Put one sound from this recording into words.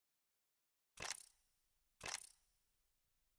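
A short interface whoosh sounds as a menu opens and closes.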